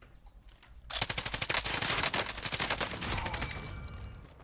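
A rapid burst of gunfire rattles close by.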